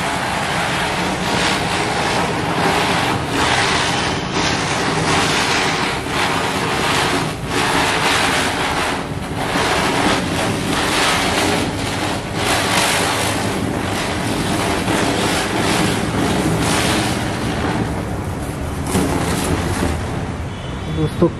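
Ground fireworks spin and hiss with a loud, steady crackle.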